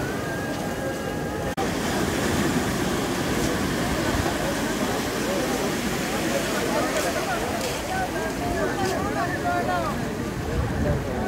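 A crowd of men shout and call out excitedly outdoors.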